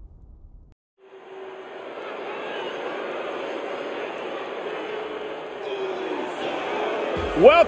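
A large arena crowd cheers and murmurs in a big echoing hall.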